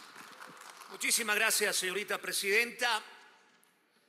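A man speaks formally over a loudspeaker in a large echoing hall.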